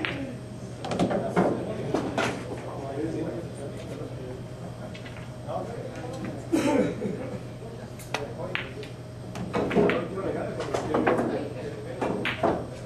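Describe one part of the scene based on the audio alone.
Balls thud against the rails of a pool table.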